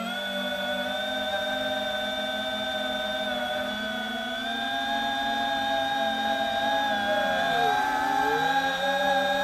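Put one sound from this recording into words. Drone propellers whine steadily, the pitch rising and dipping as the drone speeds up and turns.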